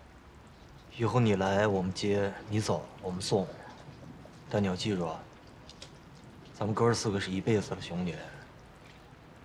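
A young man speaks calmly and quietly nearby.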